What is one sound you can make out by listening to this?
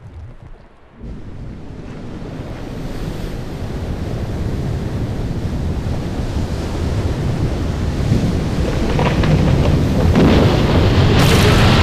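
Ice rumbles deeply and grows steadily louder.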